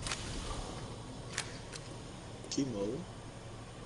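A gun is reloaded with sharp metallic clicks.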